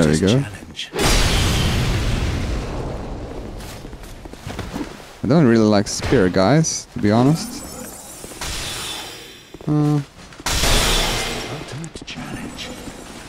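A magic spell bursts with a loud whooshing rush.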